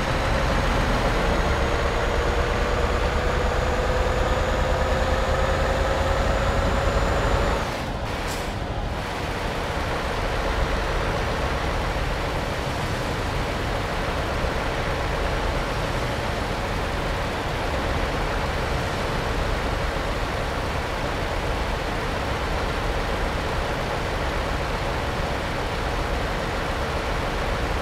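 Tyres roar on the highway.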